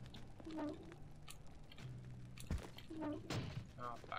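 A fire crackles close by.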